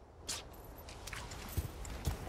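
Footsteps crunch on soft ground outdoors.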